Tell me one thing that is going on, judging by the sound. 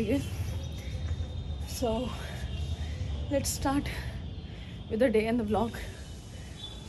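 A young woman talks animatedly close to the microphone.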